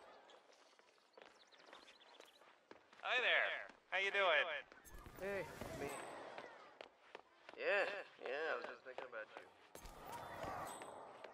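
Footsteps tap on stone pavement.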